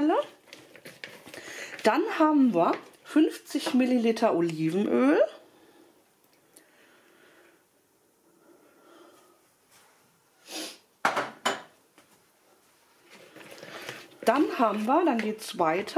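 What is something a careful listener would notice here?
A spatula scrapes and stirs food in a plastic bowl.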